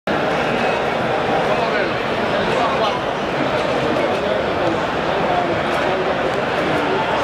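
A large crowd chatters in a big echoing hall.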